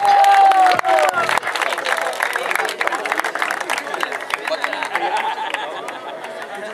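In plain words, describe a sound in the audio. A crowd cheers, whistles and claps loudly outdoors.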